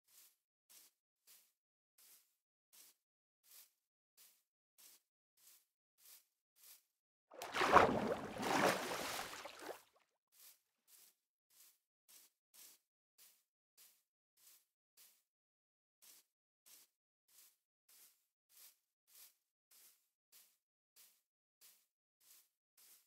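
Footsteps pad over grass in a video game.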